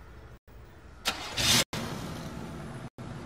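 A car engine starts up and then idles with a low rumble.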